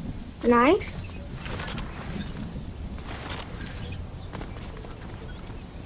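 Footsteps run quickly over grass and soil.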